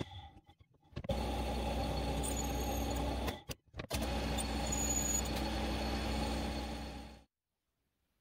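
A lathe motor hums steadily as the chuck spins.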